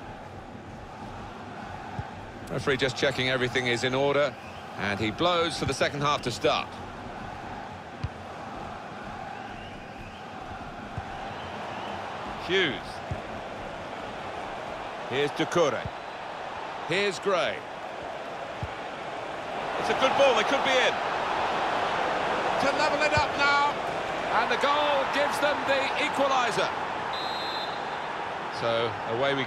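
A large stadium crowd cheers and roars, swelling louder for a while.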